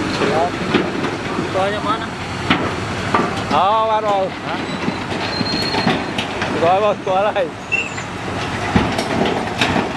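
Rocks grind and clatter as a bulldozer blade pushes them.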